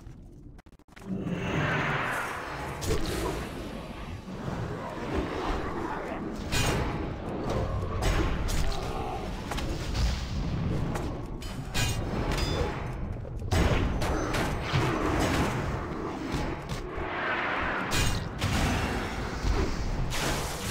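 Spell effects whoosh, crackle and burst in quick succession during a fight.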